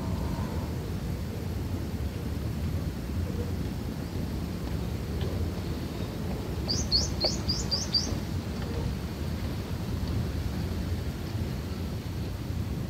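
Small animals scurry and rustle through dry bedding.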